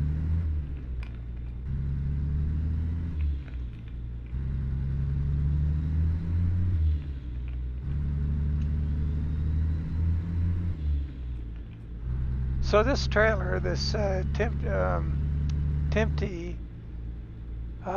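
A truck engine drones low and steady, dipping briefly at each gear change.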